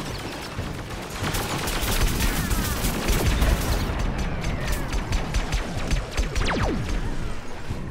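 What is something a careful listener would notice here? An energy blaster fires rapid zapping shots.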